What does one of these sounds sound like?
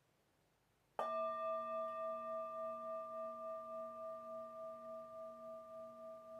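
A singing bowl is struck once and rings with a long, slowly fading hum.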